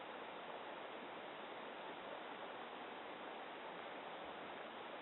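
A shallow stream rushes steadily over rocks close by.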